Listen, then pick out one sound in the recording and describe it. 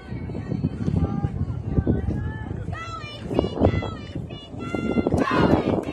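Young women shout and chant in high voices across an open field.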